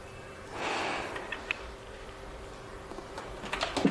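A telephone handset is set down with a clatter.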